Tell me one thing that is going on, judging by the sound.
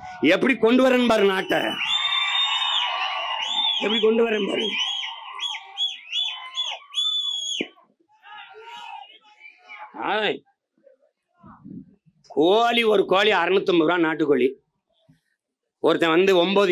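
A man gives a forceful speech through a loudspeaker system, outdoors.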